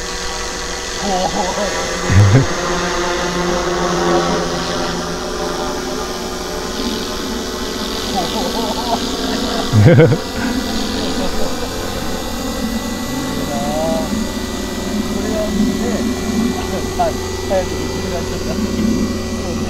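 A model helicopter's rotor whines and buzzes steadily overhead.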